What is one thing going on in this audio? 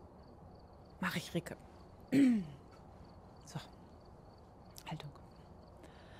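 A young woman speaks briefly and casually into a close microphone, in short bursts.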